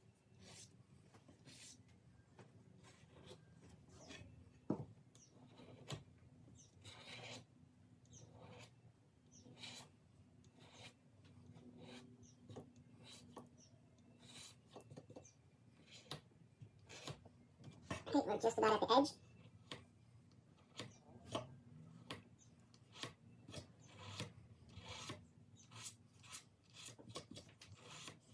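Small metal parts click and tap on a hard surface close by.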